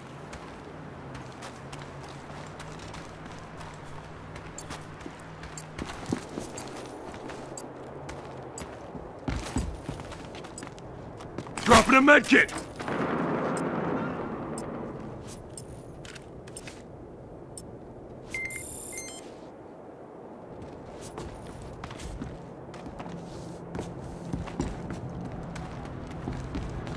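Footsteps crunch through snow and thud on a wooden floor.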